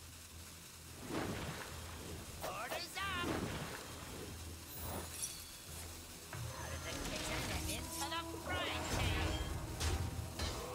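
Magical chimes and whooshes sound from a video game.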